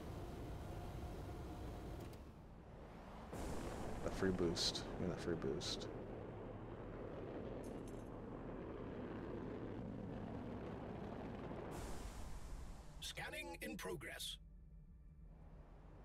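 A spaceship engine hums steadily.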